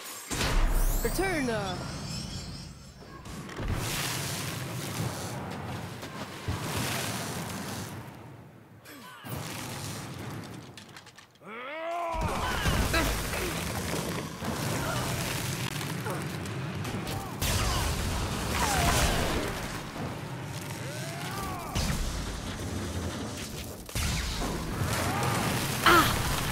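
Magic spells crackle and explode in a fast, noisy fight.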